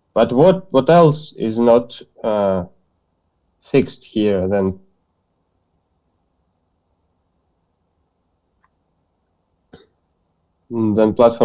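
A man explains calmly, heard through an online call.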